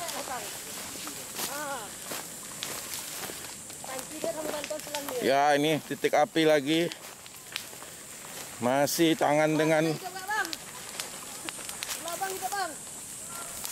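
A fire crackles and pops nearby.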